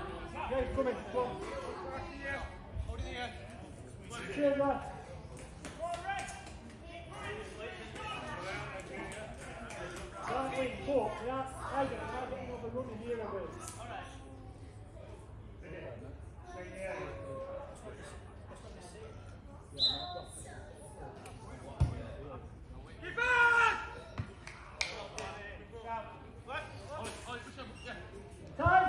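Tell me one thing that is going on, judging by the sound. Men shout and call out across an open pitch outdoors.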